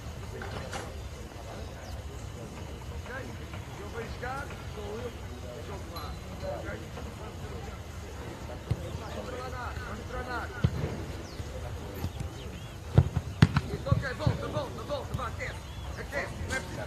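Men call out to each other in the distance.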